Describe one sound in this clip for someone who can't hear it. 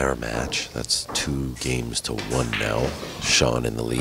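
Pool balls click together on a table.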